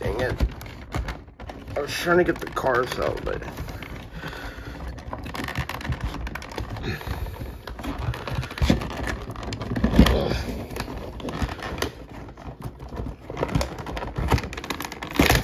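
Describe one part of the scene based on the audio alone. Plastic packaging crinkles and rustles under fingers.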